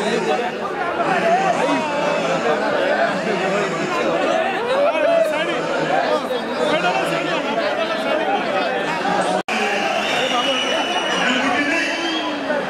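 A large crowd chatters and calls out loudly in a big echoing hall.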